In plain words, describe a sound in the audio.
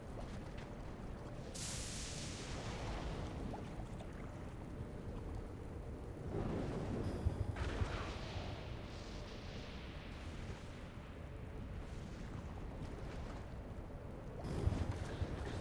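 Lava bubbles and roars steadily.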